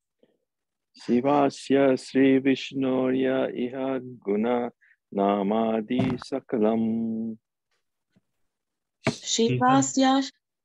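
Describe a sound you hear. A man speaks steadily through an online call, with short pauses.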